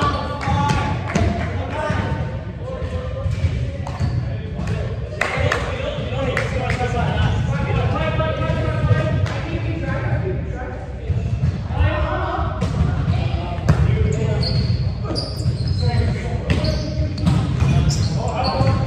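Young men shout and call out in a large echoing hall.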